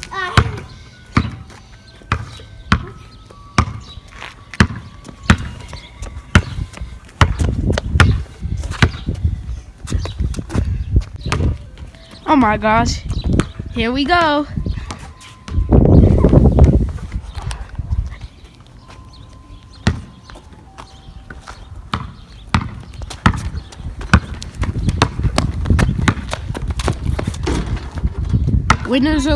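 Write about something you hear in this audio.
A basketball bounces on asphalt outdoors.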